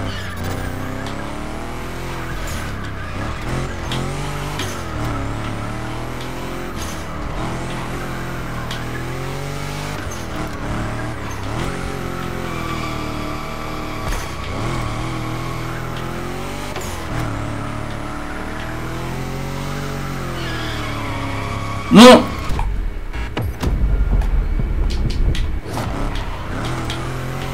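A car engine revs and whines, rising and falling as it drifts.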